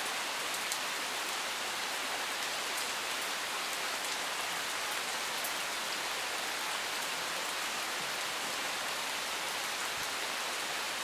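Steady rain patters on leaves and gravel outdoors.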